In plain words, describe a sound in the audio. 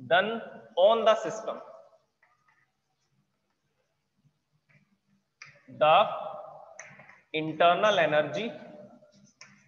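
A man speaks calmly in a lecturing tone, close by.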